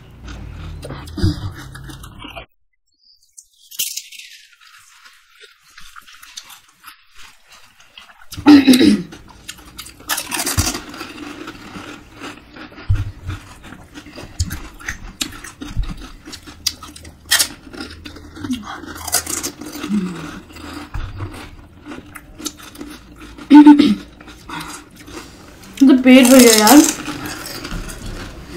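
Liquid slurps and splashes as the pastries are dipped and eaten.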